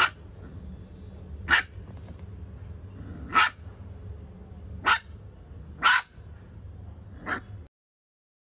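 A puppy gives short, high yips.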